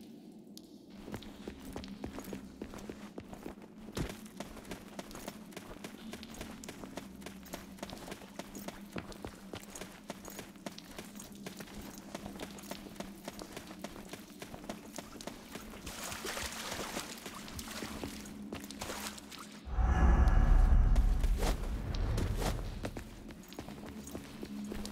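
Footsteps crunch quickly over loose gravel and rubble.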